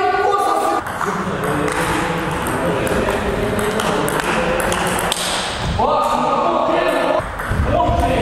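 A table tennis ball clicks back and forth off paddles and a table in a quick rally.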